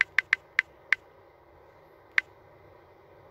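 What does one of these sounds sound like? A phone keyboard clicks with quick taps.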